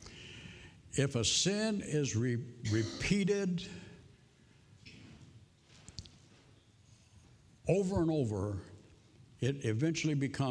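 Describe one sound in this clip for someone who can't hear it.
An elderly man speaks with emphasis into a microphone, in a large echoing hall.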